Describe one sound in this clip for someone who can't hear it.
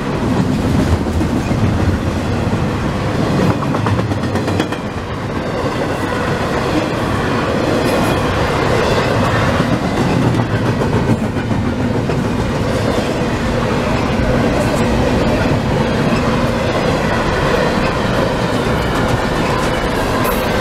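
Train wheels clatter and squeal over the rails.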